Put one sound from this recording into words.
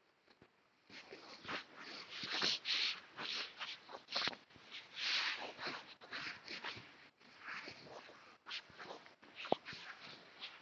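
A cloth rubs across a chalkboard in short strokes.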